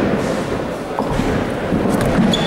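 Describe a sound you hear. A bowling ball thuds onto a lane in a large echoing hall.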